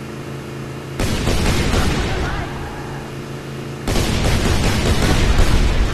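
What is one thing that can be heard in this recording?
Shotgun blasts boom in quick succession.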